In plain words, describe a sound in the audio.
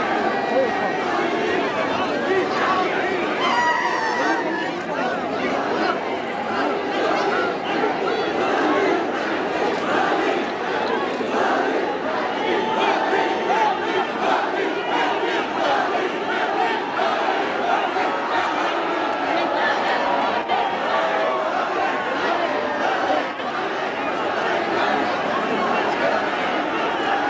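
Many young men and women chatter and call out close by.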